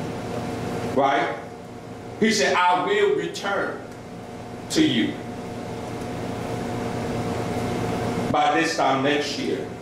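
A man preaches with animation through a microphone and loudspeakers in an echoing room.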